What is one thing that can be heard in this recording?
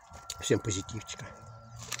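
An elderly man bites into an apple with a crunch.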